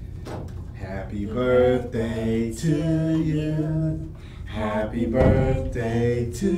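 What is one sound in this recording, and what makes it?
A man sings cheerfully nearby.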